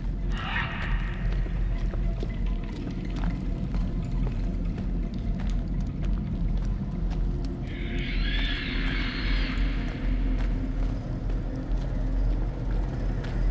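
Footsteps crunch on the ground.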